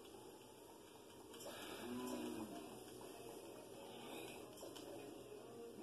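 Video game sounds play through a television's speakers.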